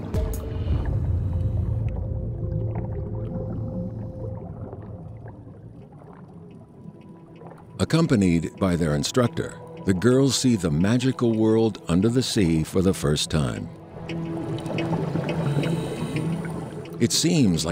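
Air bubbles gurgle and rush from divers' breathing gear underwater.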